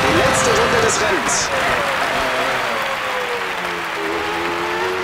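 A racing car engine drops in pitch with rapid downshifts while braking.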